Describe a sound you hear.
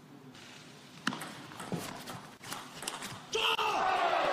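A table tennis ball clicks quickly back and forth off paddles and the table in an echoing hall.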